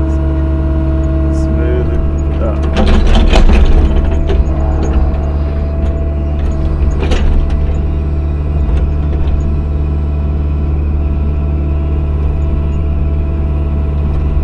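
A hydraulic pump whines as an excavator arm moves.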